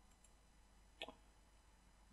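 A game menu closes with a soft click.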